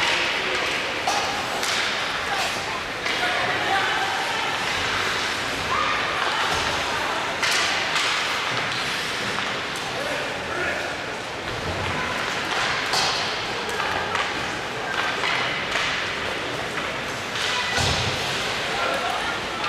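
Skate blades scrape and hiss on ice in a large echoing rink.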